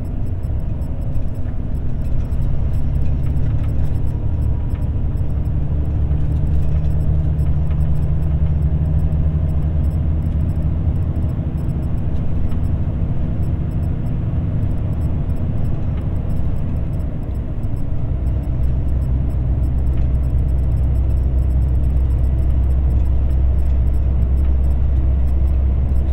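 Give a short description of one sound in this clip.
Tyres roll and hum on the road surface.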